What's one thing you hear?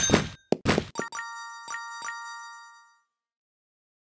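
A cheerful chime rings out and fades.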